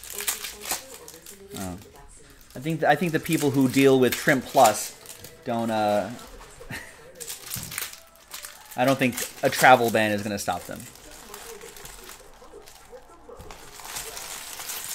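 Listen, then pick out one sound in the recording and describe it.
Foil wrappers crinkle as hands handle them.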